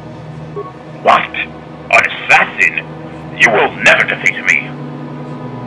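A man speaks angrily and threateningly.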